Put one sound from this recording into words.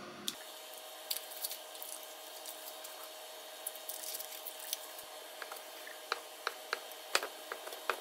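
A kitchen knife cuts through soft cheese onto a wooden cutting board.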